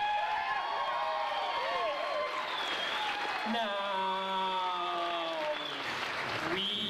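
A man sings into a microphone, amplified through loudspeakers in an echoing room.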